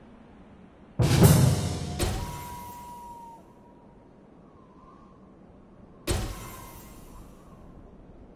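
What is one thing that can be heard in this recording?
Game interface sounds chime and whoosh as menus open and close.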